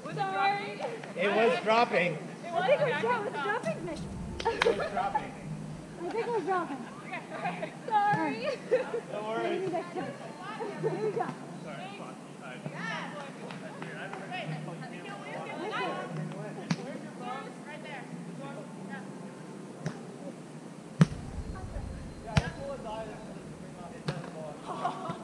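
Young women talk and laugh with animation outdoors.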